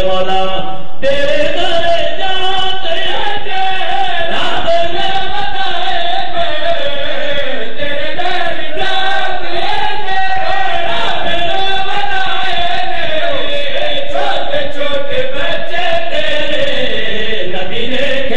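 Several men sing together in chorus through loudspeakers.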